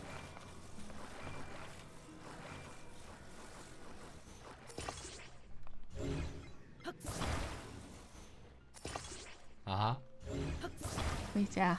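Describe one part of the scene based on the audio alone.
A magical humming tone swells and fades in short bursts.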